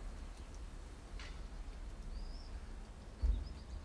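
A squirrel laps water with soft, quick little clicks.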